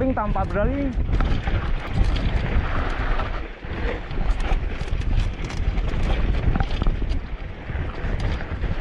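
Bicycle tyres rumble and rattle over a bumpy dirt trail.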